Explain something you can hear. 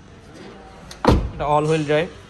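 A car door thumps shut close by.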